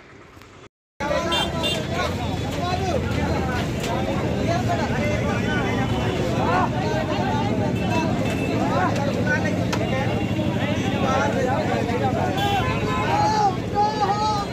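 A motorcycle engine idles with a low, steady hum.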